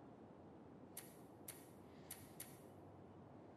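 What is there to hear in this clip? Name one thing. Soft menu clicks sound several times.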